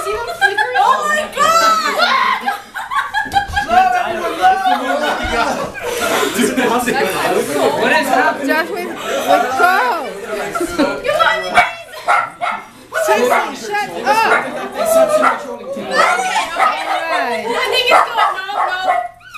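A group of men and women sing together close by.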